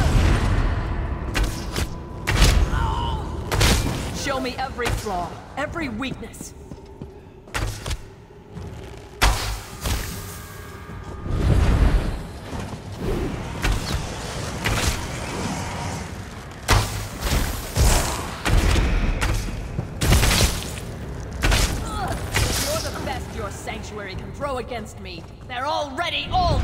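Game spells crackle and burst with sharp impacts.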